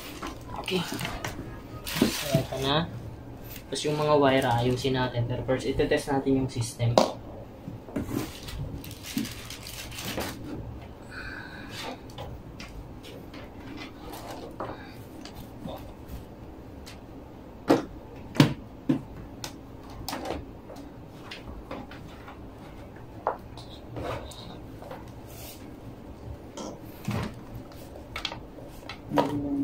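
Plugs and cables click and knock against hard plastic.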